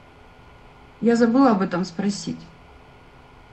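A woman speaks briefly and clearly, close to a microphone.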